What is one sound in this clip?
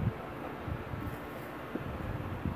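Paper sheets rustle as a hand shuffles them.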